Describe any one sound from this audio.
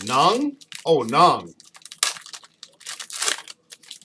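A plastic wrapper crinkles as hands tear it open.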